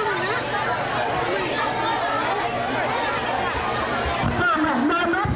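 A crowd of children chatters nearby.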